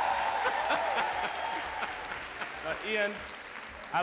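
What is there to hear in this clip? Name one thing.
A large audience cheers and applauds.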